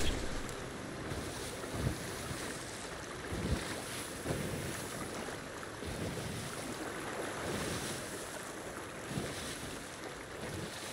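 Strong wind roars steadily through a ship's rigging.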